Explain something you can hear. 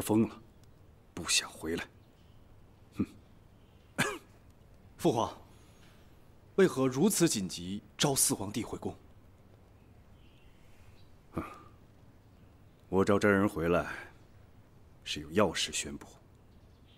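A middle-aged man speaks calmly and slowly, close by.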